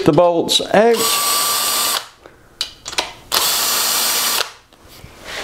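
A power tool whirs in short, loud bursts.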